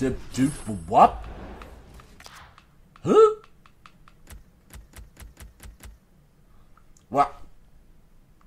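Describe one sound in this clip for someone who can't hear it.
A man exclaims loudly and excitedly, close to a microphone.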